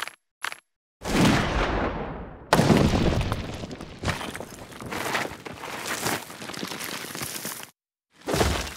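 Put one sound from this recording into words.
Coins rattle and pour down with a spooky whoosh.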